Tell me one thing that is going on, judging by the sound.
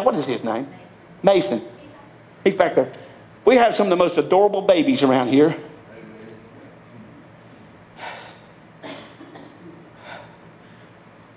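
A man preaches loudly into a microphone in an echoing hall, speaking in bursts with pauses.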